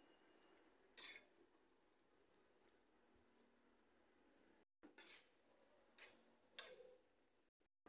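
A metal spatula scrapes against a metal pot while stirring soup.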